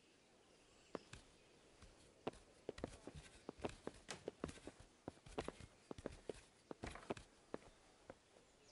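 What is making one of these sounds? Footsteps knock on the wooden rungs of a ladder.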